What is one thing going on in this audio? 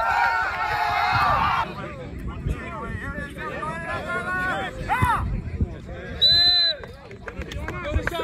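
Young men shout and cheer loudly outdoors on a field.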